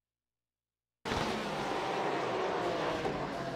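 Racing car engines roar and whine at high revs.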